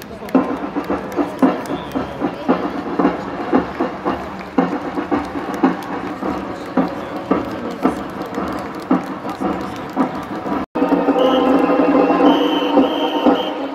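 A crowd of onlookers murmurs outdoors.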